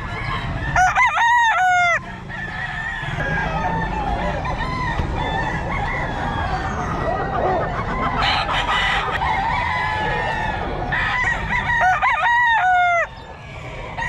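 A rooster crows close by.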